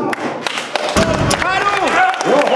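A loaded barbell thuds down onto the floor.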